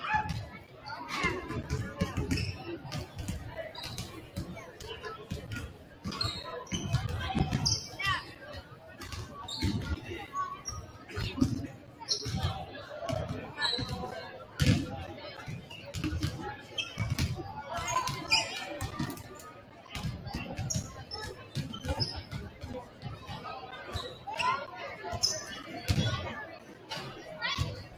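Basketballs bounce on a wooden court.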